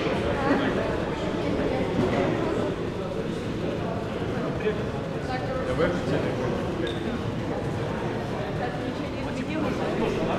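Several people talk and murmur in a large echoing hall.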